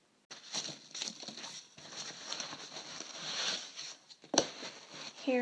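Foam packing peanuts rustle and squeak as a hand digs through them.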